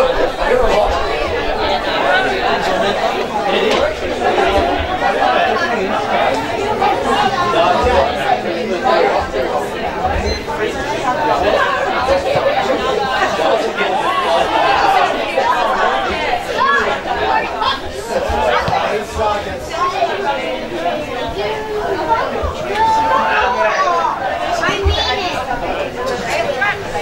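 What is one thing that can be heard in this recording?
A crowd of spectators chatters and shouts nearby, outdoors.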